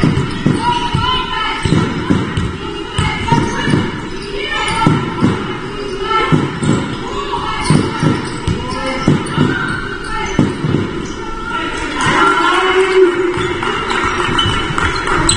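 A basketball bounces with hollow thuds in a large echoing hall.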